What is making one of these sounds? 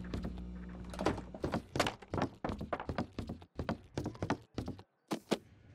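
Footsteps thud quickly on a wooden floor and stairs.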